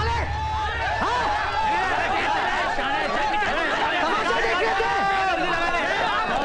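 A large crowd shouts and screams in panic outdoors.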